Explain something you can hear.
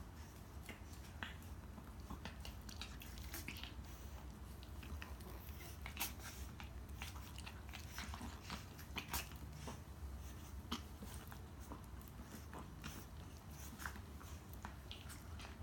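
Small dogs' claws click and scrape on a tiled floor.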